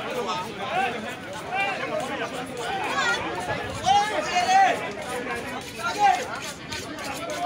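A crowd of men and women talk and shout over each other nearby, outdoors.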